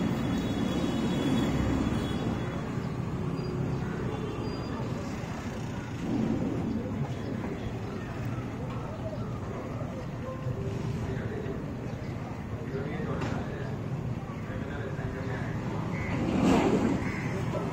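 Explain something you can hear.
Motor scooters idle and pull away nearby.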